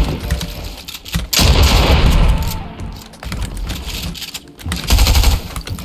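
Wooden building pieces snap into place with quick clattering bursts.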